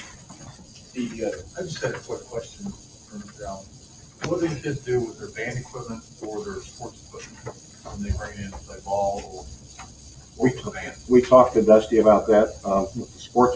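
A man speaks through a microphone at a distance.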